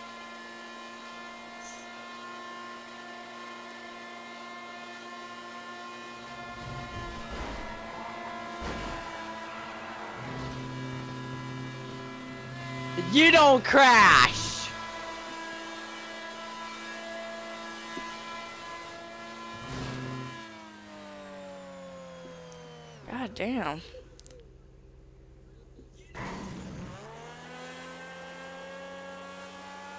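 A race car engine hums steadily at high revs.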